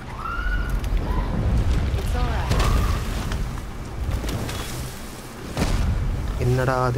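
A large boar grunts and snorts nearby.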